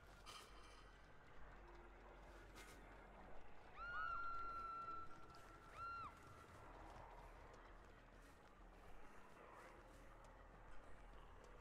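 Footsteps crunch quickly over dry leaves and gravel.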